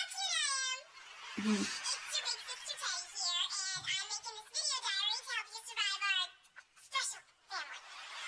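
A young woman talks cheerfully and with animation, close by.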